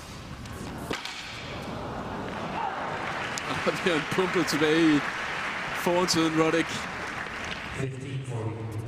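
A crowd applauds and cheers loudly.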